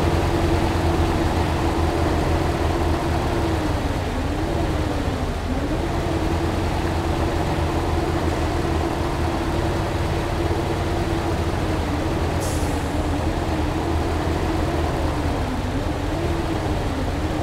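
A truck engine idles with a steady, low hum.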